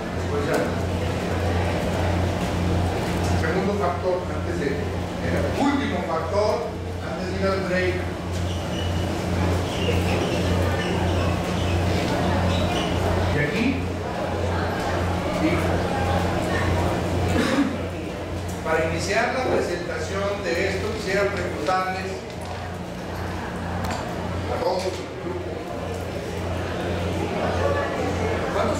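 A middle-aged man speaks steadily, as if lecturing.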